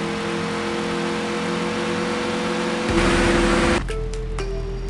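A game car engine roars at high speed.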